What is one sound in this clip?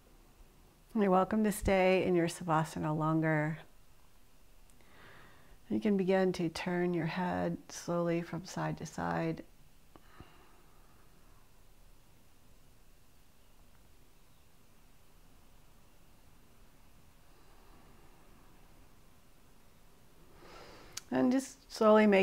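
A woman speaks slowly and calmly, close to a microphone.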